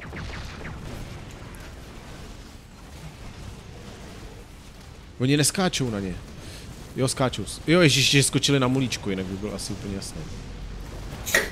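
Explosions burst and boom.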